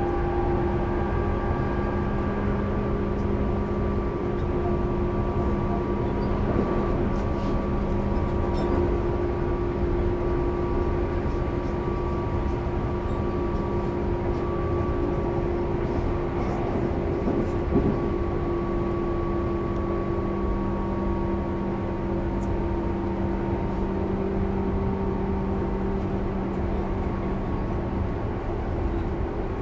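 An electric train's motor hums steadily nearby.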